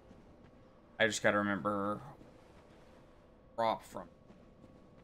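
A young man speaks briefly and close to a microphone.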